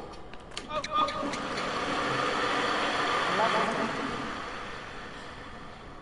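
A crowd applauds and cheers, swelling and then fading.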